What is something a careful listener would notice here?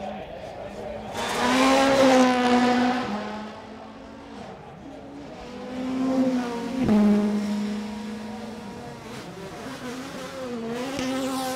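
A turbocharged rally car accelerates hard and shifts gears up a track.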